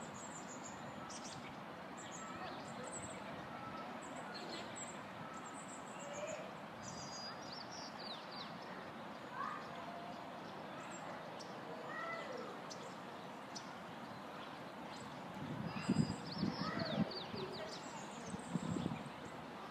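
An eagle gives high, chirping calls.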